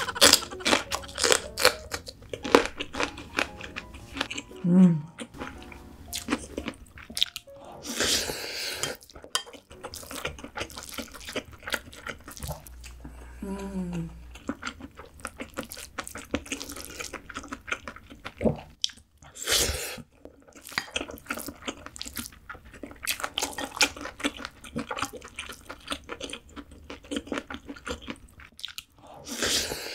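A young woman chews and slurps food close to a microphone.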